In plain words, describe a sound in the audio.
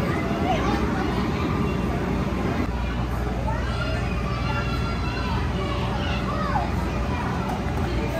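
A woman talks to the children.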